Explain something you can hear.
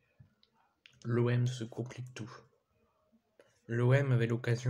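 A young man talks close to the microphone, with animation.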